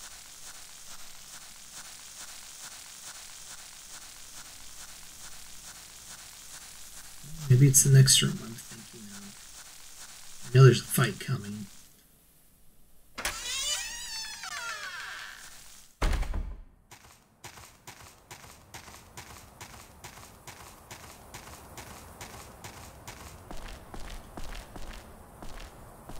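Footsteps tread steadily on the ground.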